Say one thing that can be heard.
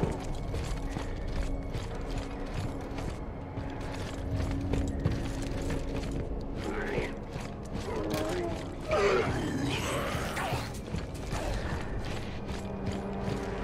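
Heavy boots run across a metal walkway.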